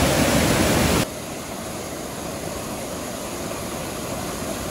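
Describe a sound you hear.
Water rushes and churns steadily a little farther off.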